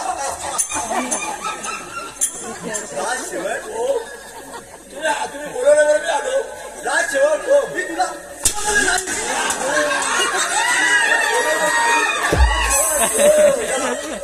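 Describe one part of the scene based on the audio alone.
Another man answers loudly in a theatrical voice.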